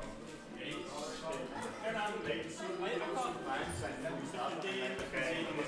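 Young men talk casually nearby.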